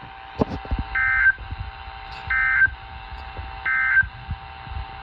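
A weather radio sounds a series of short, shrill alert beeps.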